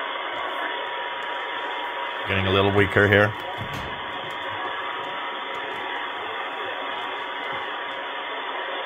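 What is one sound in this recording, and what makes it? A steady whistling tone sounds from a radio receiver.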